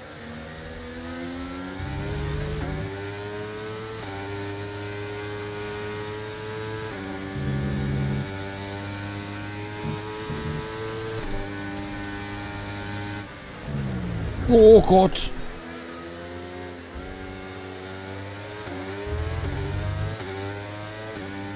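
A racing car engine whines loudly, rising in pitch and dropping with each gear change.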